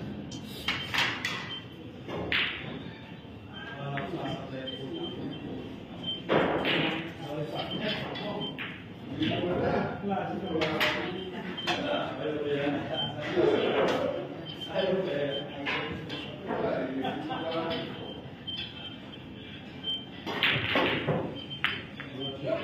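Pool balls click sharply against each other and a cue.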